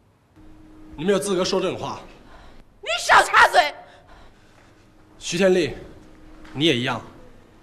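A man speaks sharply and firmly.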